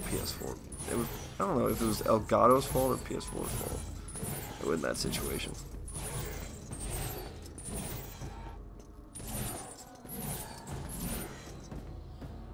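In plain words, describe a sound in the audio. Footsteps patter quickly across a stone floor.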